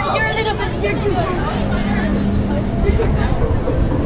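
Young people chatter nearby.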